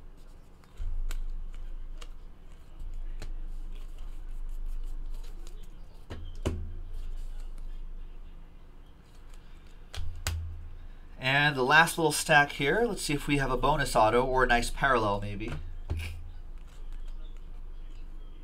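Trading cards slide and tap against each other as they are shuffled.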